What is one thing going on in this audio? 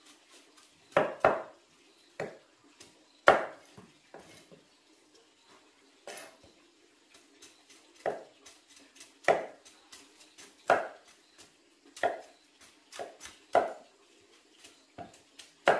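A knife chops through woody roots with sharp knocks.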